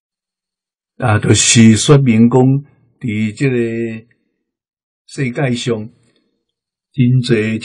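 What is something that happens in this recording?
An elderly man speaks calmly and slowly, close to a microphone.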